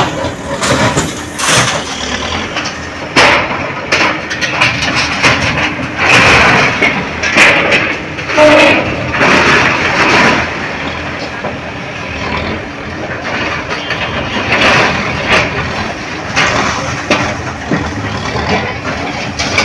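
A concrete wall crashes and crumbles as a machine arm breaks it apart.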